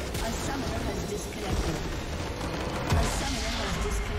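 Game battle effects clash and crackle.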